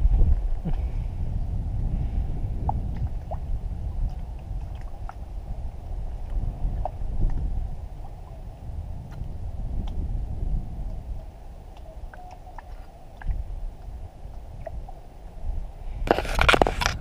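A paddle dips and splashes in calm water.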